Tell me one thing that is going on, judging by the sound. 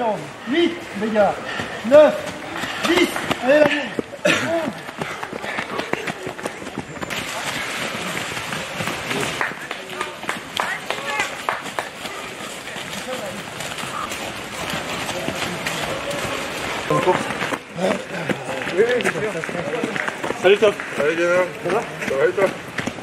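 Footsteps crunch and rustle through dry leaves as runners jog past.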